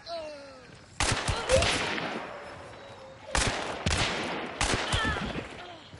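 Revolver shots bang loudly, one after another.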